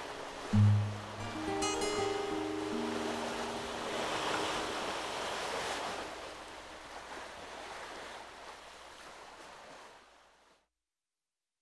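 An acoustic guitar plays a slow melody and then rings out.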